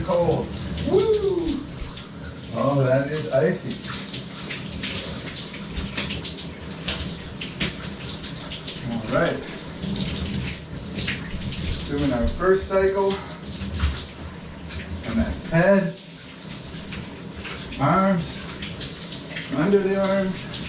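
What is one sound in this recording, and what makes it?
Shower water sprays and splashes steadily.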